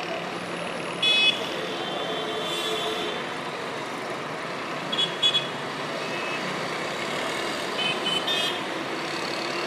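Car horns honk in short bursts in the distance.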